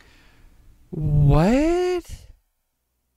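A young man makes a long, wavering, drawn-out sound with his voice.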